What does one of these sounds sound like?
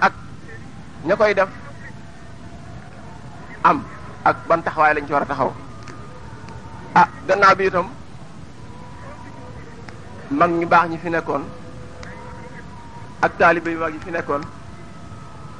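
A man chants into a microphone in short melodic phrases with pauses between them.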